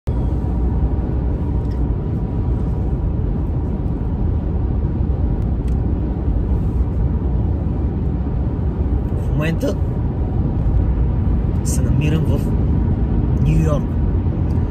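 A car engine and road noise rumble steadily from inside a moving car.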